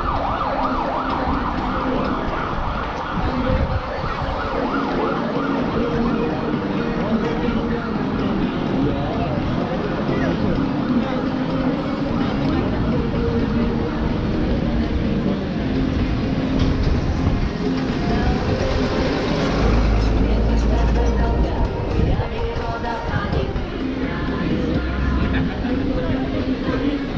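A crowd of pedestrians chatters on a busy footpath.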